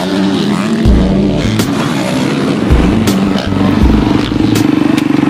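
A dirt bike engine revs loudly up and down, close by.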